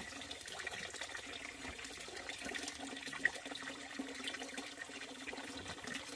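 Water trickles into a basin.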